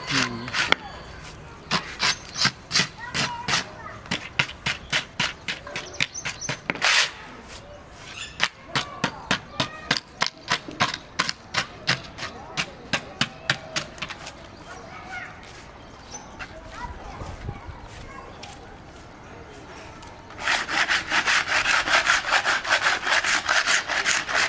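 A hand tool scrapes in quick, rhythmic strokes on concrete.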